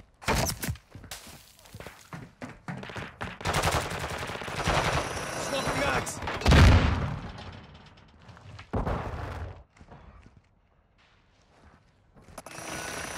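Footsteps thud quickly on hard ground and metal steps.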